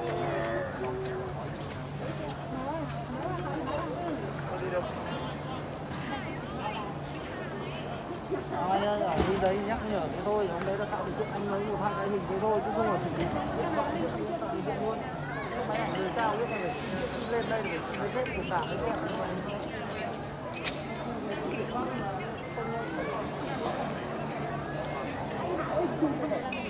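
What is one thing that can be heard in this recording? A crowd of men chatters in a large echoing hall.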